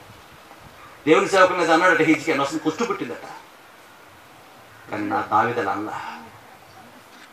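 A middle-aged man speaks through a microphone and loudspeaker, in short phrases with pauses.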